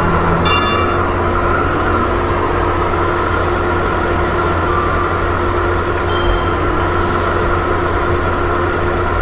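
Kart engines hum steadily as they race.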